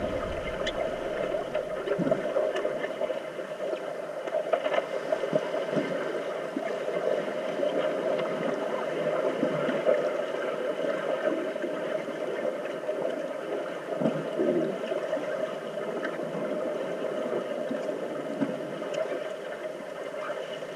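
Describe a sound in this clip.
Air bubbles gurgle from a scuba regulator.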